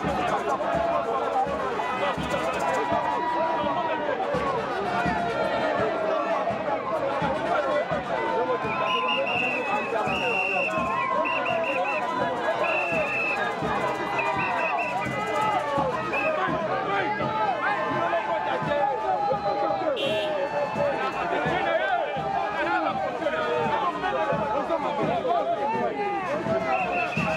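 A large crowd cheers and shouts loudly outdoors, close by.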